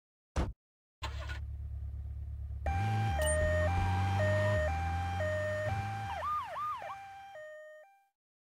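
An engine hums low as the ambulance pulls away.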